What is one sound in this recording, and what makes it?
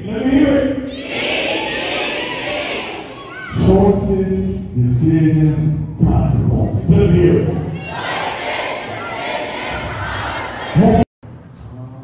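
A crowd of young people cheers and shouts back.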